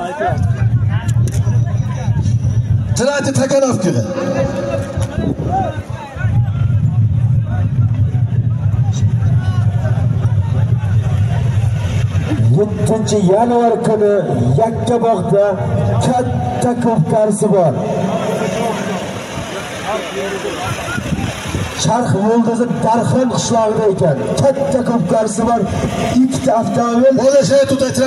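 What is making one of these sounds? A large crowd of men shouts and chatters all around.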